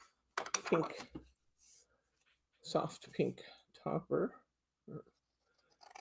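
Scissors snip through card.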